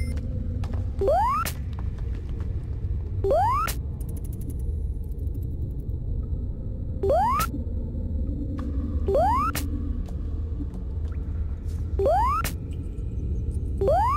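A cartoon jump sound effect chirps upward again and again.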